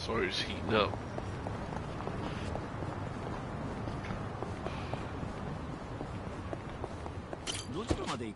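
Quick footsteps run on pavement.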